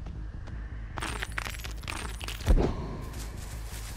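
A heavy blow swings and lands with a thud.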